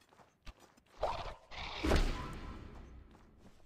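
A magic blast whooshes and crackles.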